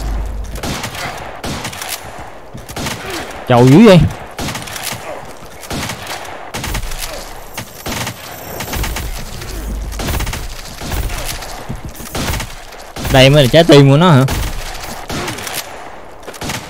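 Quick hits and magic blasts of a fast-paced video game ring out.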